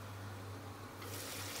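Steam hisses as a pan lid is lifted.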